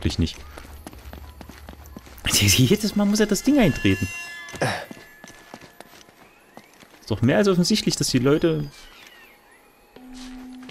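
Quick footsteps run across a stone floor.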